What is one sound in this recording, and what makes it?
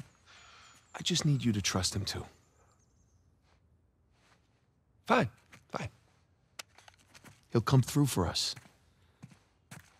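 A young man answers calmly up close.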